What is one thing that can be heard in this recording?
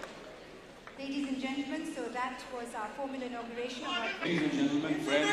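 A woman speaks into a microphone through a loudspeaker.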